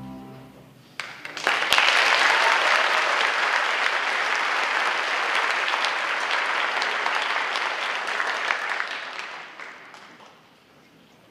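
An audience applauds loudly in a large hall, then the clapping dies away.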